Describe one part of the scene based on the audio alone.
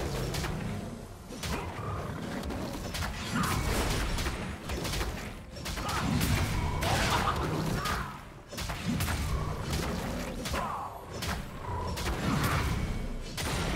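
Video game spell effects whoosh and crackle during a fight.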